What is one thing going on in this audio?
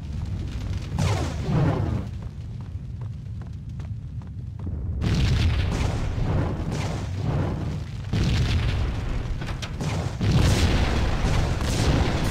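An explosion booms with a roaring burst of fire.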